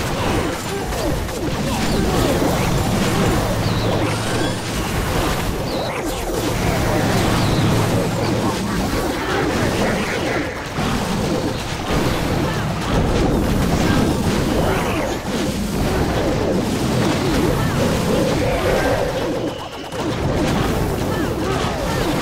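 Game battle sounds of explosions and clashing weapons go on throughout.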